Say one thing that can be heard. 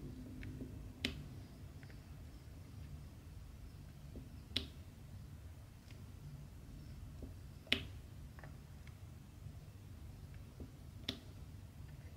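A pen tool taps small beads onto a board with sharp little clicks.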